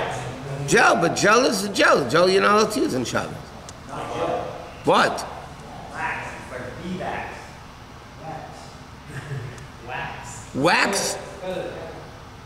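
An elderly man speaks calmly and close.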